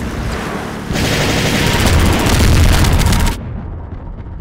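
A mounted machine gun fires in a rapid burst.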